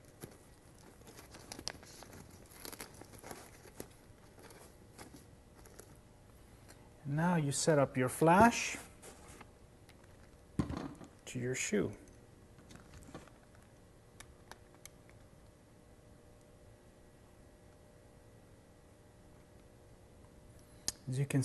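Fabric rustles and a metal bracket clicks as a man handles a light attachment.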